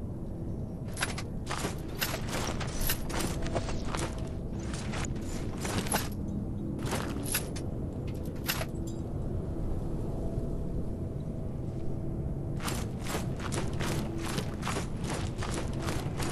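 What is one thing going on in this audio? Armoured footsteps crunch on stone.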